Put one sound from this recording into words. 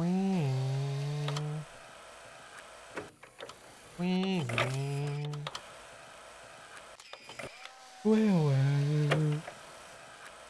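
A mechanical arm whirs with a rising and falling hum, again and again.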